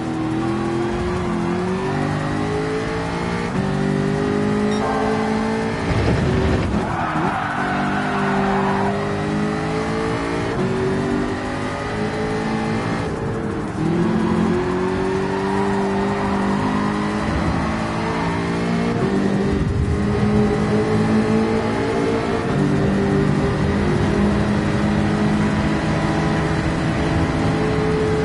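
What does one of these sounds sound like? A race car engine revs hard, rising in pitch and dropping with each gear change.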